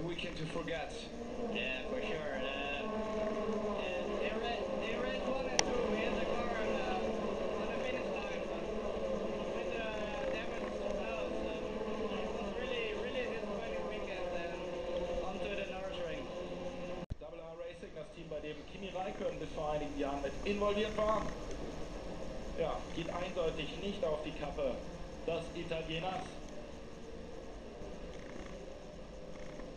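Racing car engines whine and roar, heard through a television speaker.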